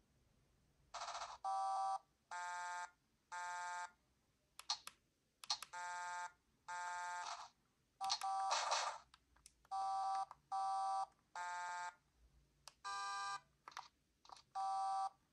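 A handheld video game plays bursts of short, bright electronic beeps.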